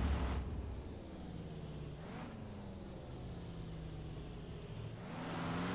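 A pickup truck's engine idles with a steady low hum.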